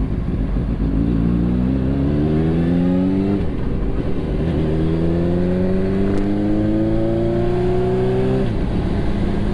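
A motorcycle engine rises in pitch as the bike speeds up through the gears.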